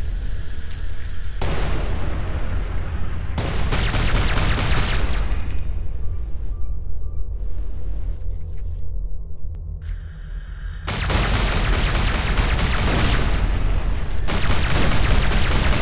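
A spacecraft engine rumbles low and steadily.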